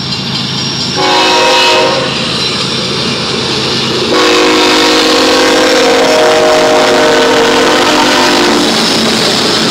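A locomotive horn blasts loudly.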